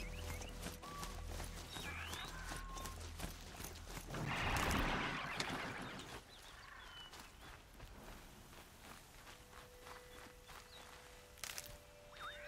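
Footsteps rustle through dense leafy plants.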